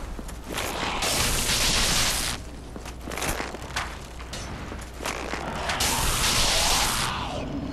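Wings flap in loud rushing gusts.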